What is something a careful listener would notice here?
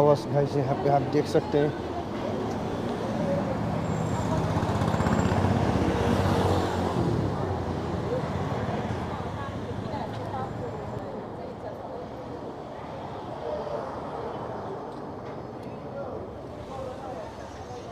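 Street traffic hums and rumbles steadily from below.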